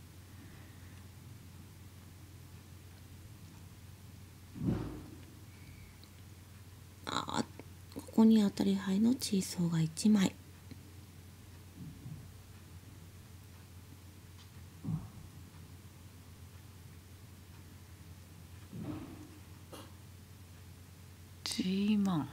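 Mahjong tiles click softly as they are placed on a table.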